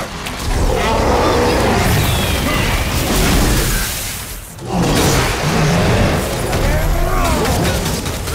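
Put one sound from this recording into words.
Weapons clash and strike in combat.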